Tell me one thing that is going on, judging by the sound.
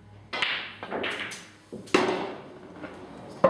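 Pool balls clack together on the table.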